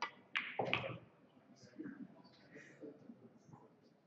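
Pool balls click together and roll across the table.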